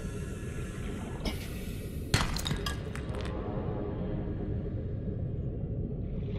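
Water rumbles low and steadily all around, as if heard underwater.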